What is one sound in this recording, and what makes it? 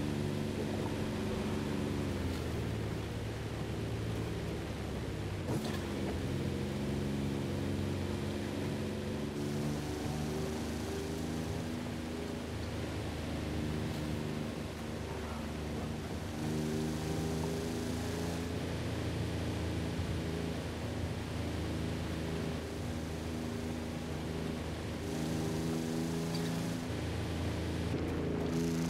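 A truck engine hums steadily at low revs.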